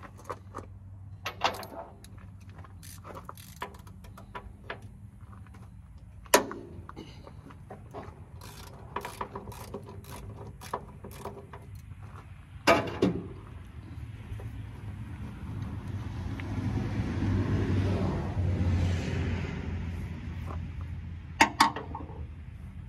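A metal wrench clinks and knocks against metal parts.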